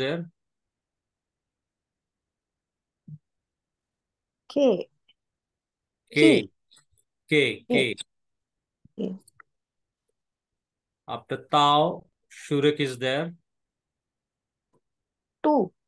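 A man speaks slowly and clearly over an online call, with pauses between words.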